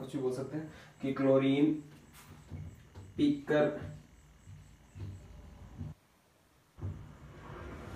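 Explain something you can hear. A young man speaks clearly and steadily, close by.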